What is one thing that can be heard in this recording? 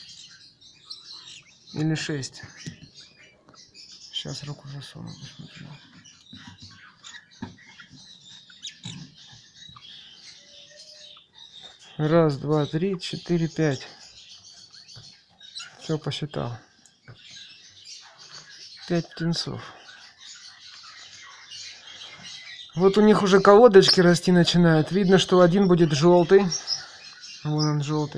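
Baby birds chirp and squeak softly and continuously.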